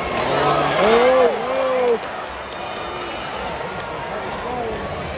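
Skates scrape across ice.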